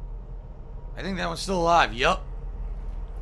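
A man exclaims loudly through a microphone.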